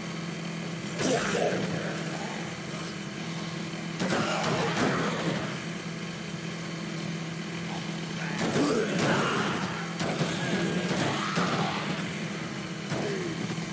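A young man talks with animation into a microphone, in short bursts.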